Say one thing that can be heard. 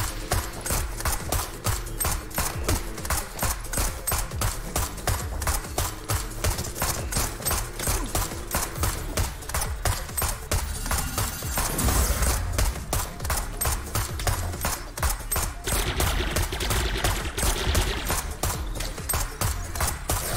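Rapid gunshots fire in quick bursts.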